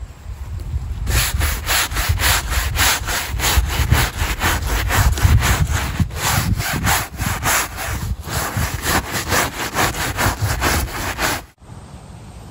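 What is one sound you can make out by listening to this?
A stiff brush scrubs rapidly against a wet mesh net.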